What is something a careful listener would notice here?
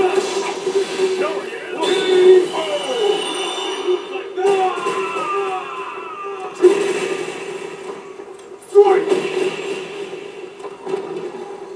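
Game sound effects whoosh and boom through a television speaker.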